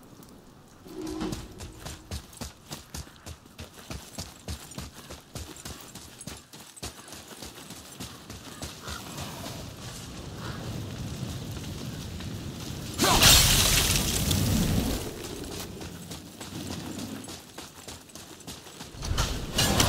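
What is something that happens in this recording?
Heavy footsteps run over dirt and stone.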